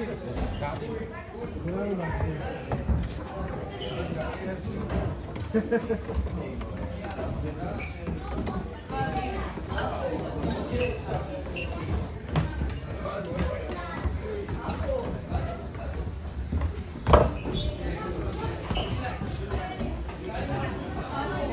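Footsteps shuffle down metal stairs.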